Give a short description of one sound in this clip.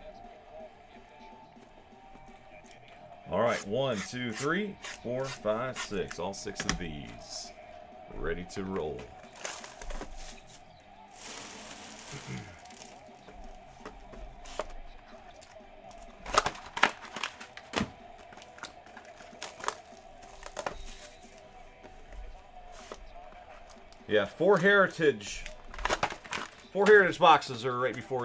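Card boxes and packs tap and rustle as hands handle them.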